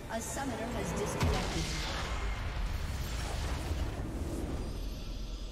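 A loud game explosion booms and rumbles.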